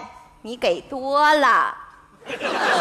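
A woman speaks with animation, heard clearly through a microphone.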